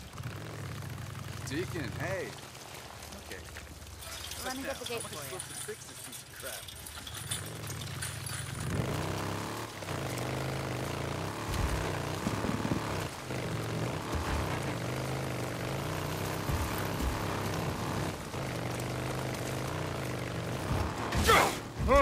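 A motorcycle engine hums and revs as the bike rides along.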